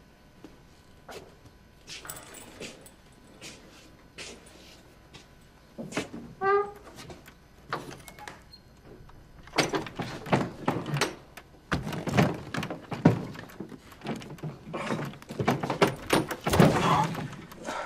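Footsteps shuffle and scuff across a wooden floor.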